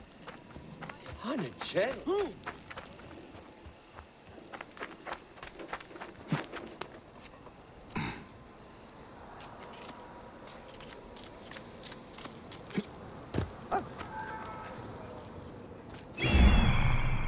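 Footsteps patter quickly on sand and stone.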